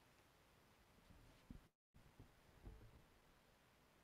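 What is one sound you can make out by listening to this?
A person sits down heavily on a chair with a soft thump.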